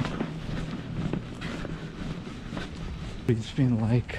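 Footsteps thud softly on carpet.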